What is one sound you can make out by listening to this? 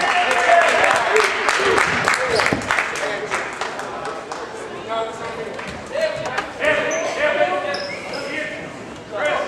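A crowd murmurs and calls out in a large echoing gym.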